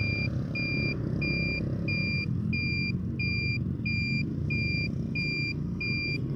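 A motor scooter rides along on an asphalt road.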